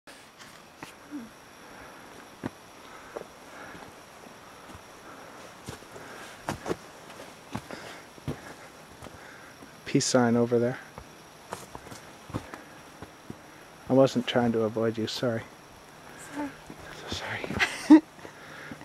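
Footsteps crunch slowly on a dry forest floor.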